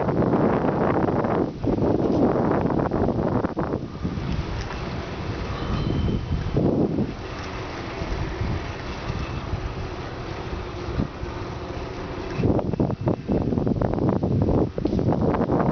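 Bicycle tyres roll steadily over pavement.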